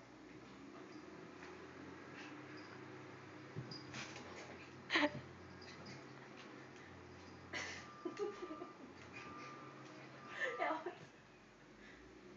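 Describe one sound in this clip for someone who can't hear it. A puppy and a kitten scuffle and patter across a wooden floor.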